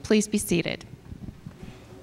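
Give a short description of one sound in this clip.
An elderly woman speaks into a microphone in a large echoing hall.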